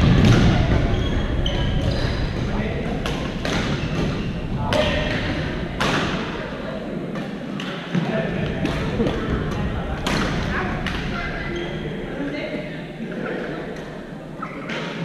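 Several young players call out and chatter in the distance.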